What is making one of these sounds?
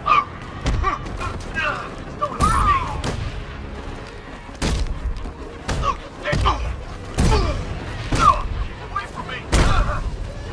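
Heavy blows land with loud thuds, again and again.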